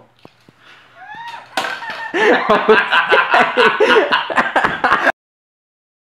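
A young woman bursts into loud, shrieking laughter, close by.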